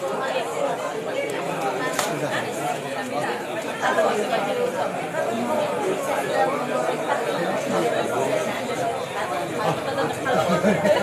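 A crowd of men and women chatters close by outdoors.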